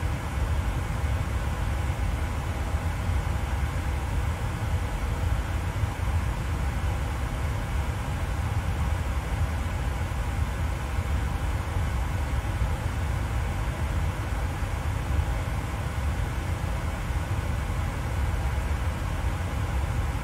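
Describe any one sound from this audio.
Jet engines hum in a steady low drone.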